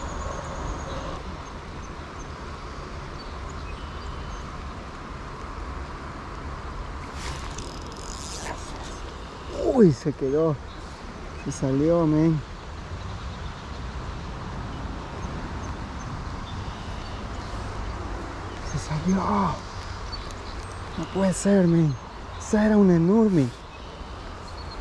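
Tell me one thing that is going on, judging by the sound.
Water flows steadily in a stream.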